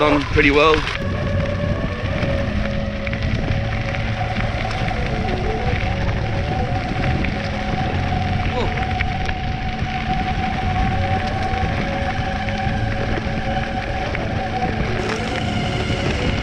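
An electric motor whines steadily.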